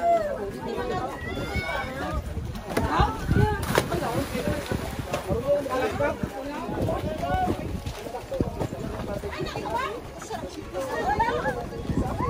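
Young women and men chat and laugh nearby, outdoors.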